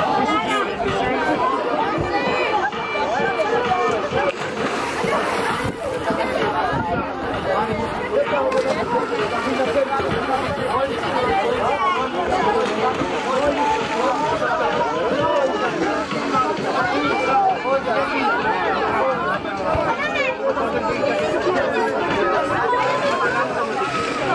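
A crowd of young men and women chatter and shout close by, outdoors.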